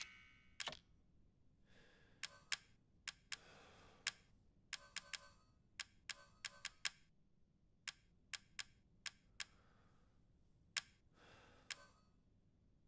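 Short electronic menu clicks tick in quick bursts.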